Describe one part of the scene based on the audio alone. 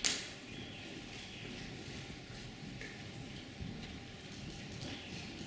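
A middle-aged woman speaks calmly into a microphone in a large echoing hall.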